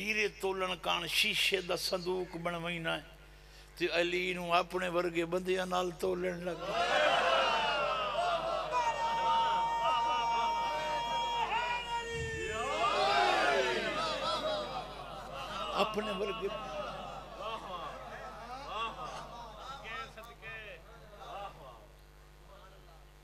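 A middle-aged man speaks forcefully into a microphone, heard through loudspeakers with echo.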